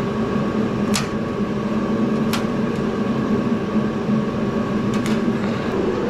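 Pliers snip through wires with sharp clicks.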